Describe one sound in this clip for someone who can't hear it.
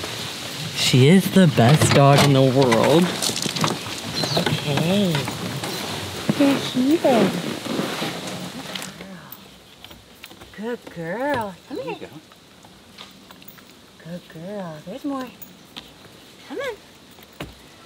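A puppy whines in high-pitched cries.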